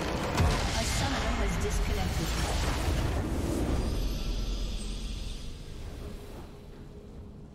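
Magical blasts and explosions crash and roar loudly, then fade away.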